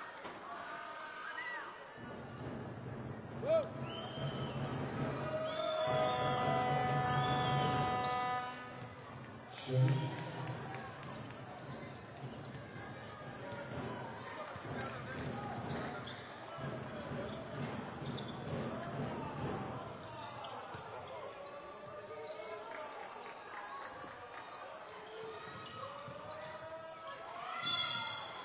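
A basketball bounces on a wooden court.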